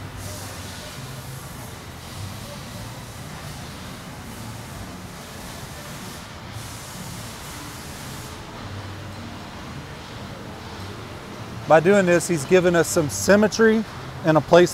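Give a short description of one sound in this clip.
Metal rods clink softly.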